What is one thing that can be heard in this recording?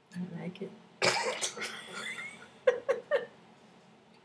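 A woman laughs close to a webcam microphone.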